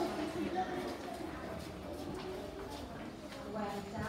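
Children chatter in a busy room.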